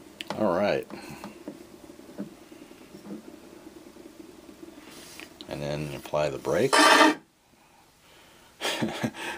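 An old gramophone record plays music with a scratchy hiss.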